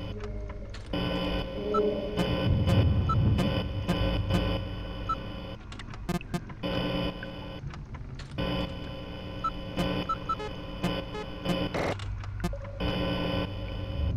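Short electronic clicks sound now and then.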